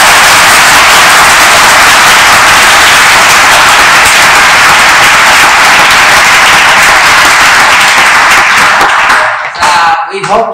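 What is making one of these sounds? A crowd claps and cheers loudly in a large hall.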